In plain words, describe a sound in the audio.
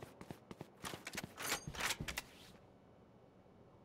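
A rifle scope clicks as it zooms in.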